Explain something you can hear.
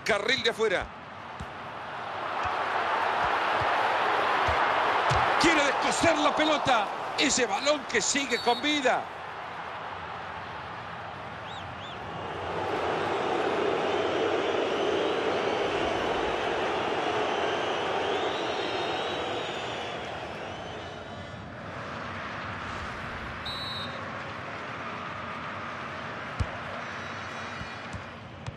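A large stadium crowd roars and cheers, rising and falling.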